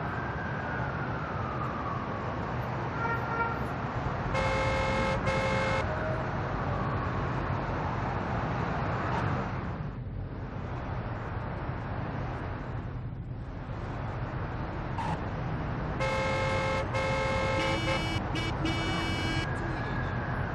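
A car engine roars and revs steadily.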